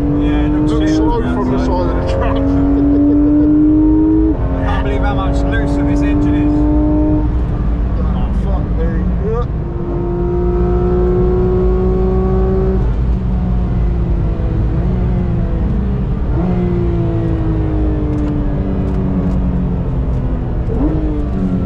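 Wind and road noise rush steadily around a fast-moving car.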